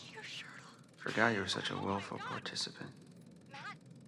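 A young man asks questions in a worried voice.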